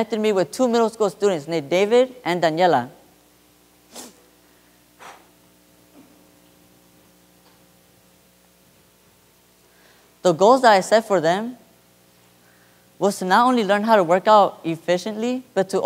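A young man speaks calmly through a microphone in a large room.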